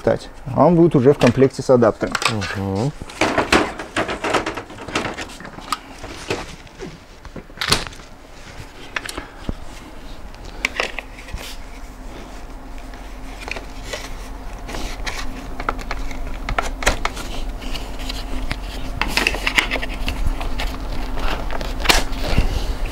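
Plastic parts of a baby stroller click and clatter as a man handles it.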